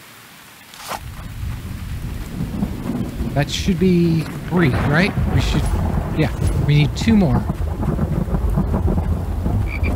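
An elderly man talks close to a microphone.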